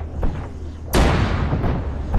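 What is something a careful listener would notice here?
A large explosion booms at close range and rumbles.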